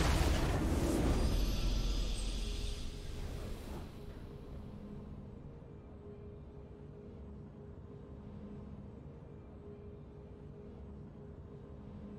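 A soft triumphant fanfare plays.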